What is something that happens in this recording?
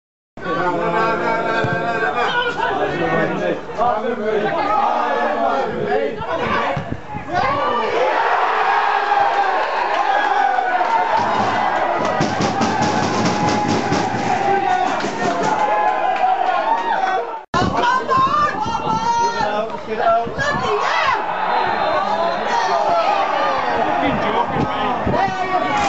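A crowd of football spectators shouts and cheers outdoors.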